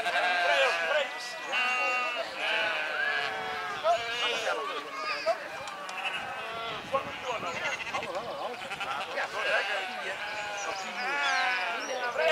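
A flock of sheep bleats loudly and constantly, close by.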